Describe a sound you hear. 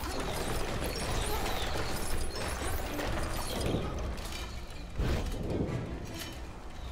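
Playful electronic sound effects chime and clatter throughout.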